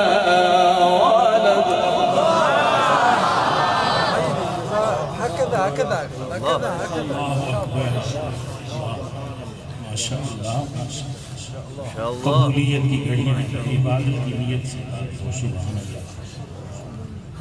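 A man chants melodically into a microphone, his voice echoing in a large hall.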